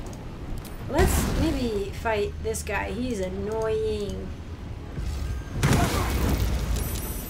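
Flames burst with a loud roaring whoosh.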